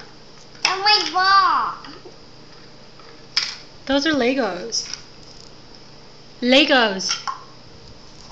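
A small child talks and squeals playfully close by.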